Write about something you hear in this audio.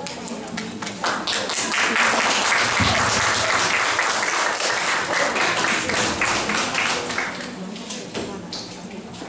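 An audience cheers and shouts loudly in an echoing hall.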